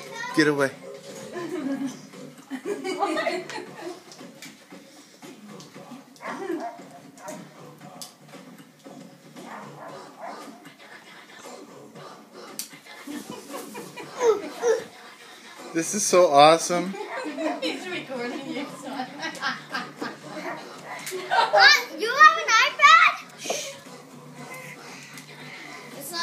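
Pop music plays from a television in a room.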